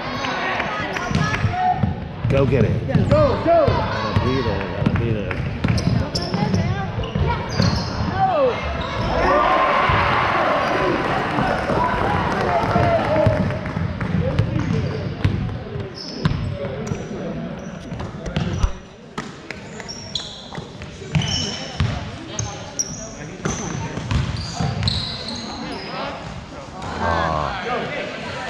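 A crowd of spectators talks and cheers.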